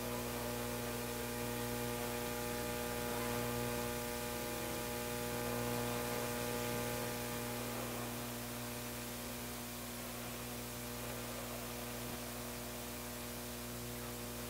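Cables rustle and scrape as they are handled.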